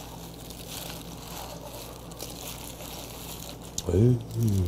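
Vegetables rustle and squelch as they are mixed by hand.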